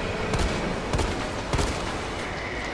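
Pistol shots ring out in an echoing tunnel.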